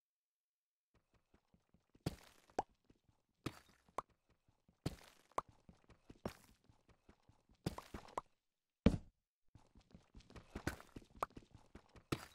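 A pickaxe repeatedly strikes stone, which cracks and crumbles.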